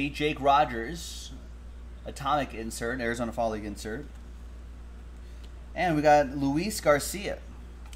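Trading cards shuffle and slide in hands.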